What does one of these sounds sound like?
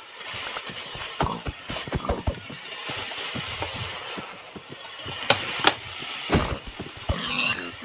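A pig grunts and squeals.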